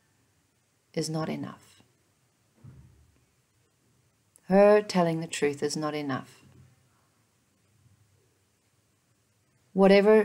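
A woman speaks calmly in short phrases, close to a microphone.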